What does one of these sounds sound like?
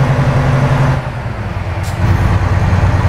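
A truck engine briefly dips as a gear changes.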